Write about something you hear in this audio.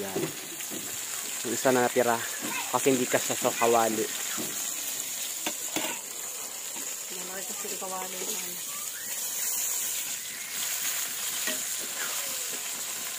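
Fish sizzles gently in hot oil in a pan.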